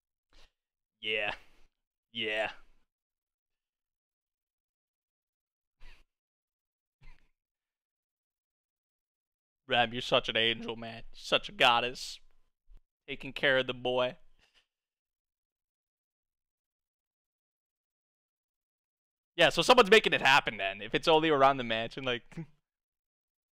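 A young man talks into a close microphone in short, lively bursts.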